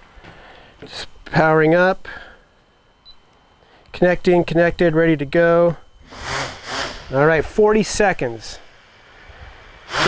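A man speaks calmly close by.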